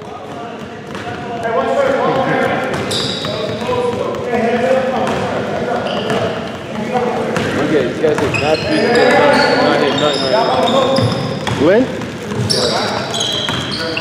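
Young men shout and call out to each other across the hall.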